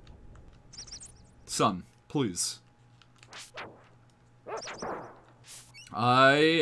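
Sword slashes and hits ring out in a video game.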